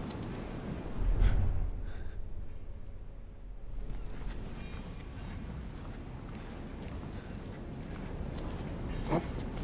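Footsteps shuffle softly on a hard floor.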